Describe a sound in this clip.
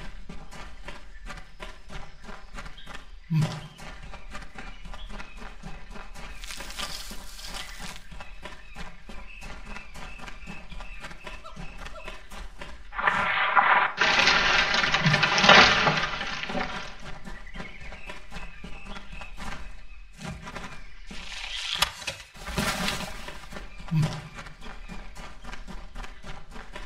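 Footsteps patter softly on leafy ground.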